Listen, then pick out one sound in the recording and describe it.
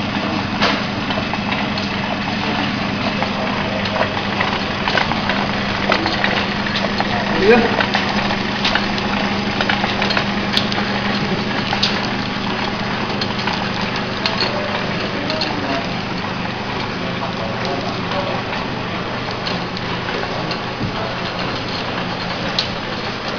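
A packaging machine hums steadily.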